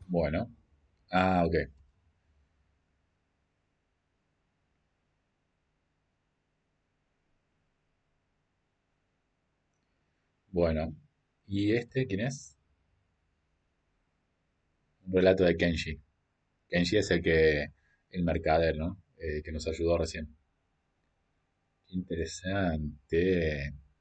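A young man talks casually into a microphone, in short bursts with pauses.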